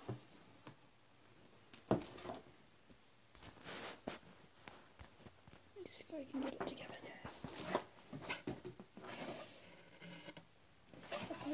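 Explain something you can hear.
Hands handle and rustle a cardboard box.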